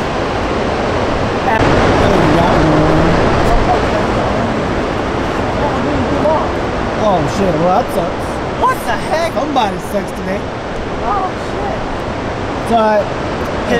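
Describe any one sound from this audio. Water roars steadily over a dam's spillway.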